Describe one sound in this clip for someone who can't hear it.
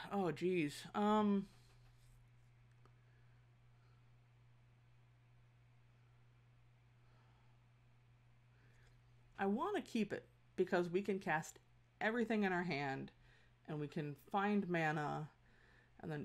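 A woman talks with animation into a close microphone.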